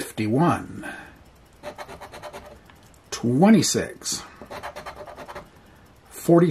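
A coin scratches rapidly across a card.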